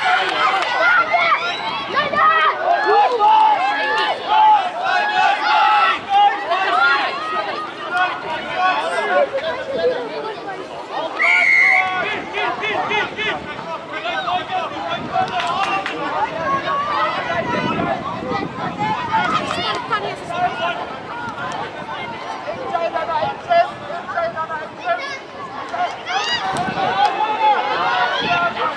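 Spectators close by shout and cheer excitedly outdoors.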